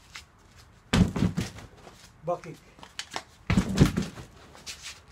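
A man strikes a hanging bag with loud, heavy thuds.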